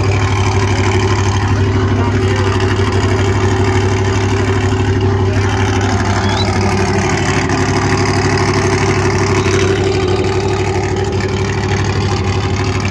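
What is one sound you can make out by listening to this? A truck engine idles loudly with a deep steady rumble.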